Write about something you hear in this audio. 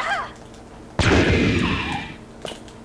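A gunshot fires loudly.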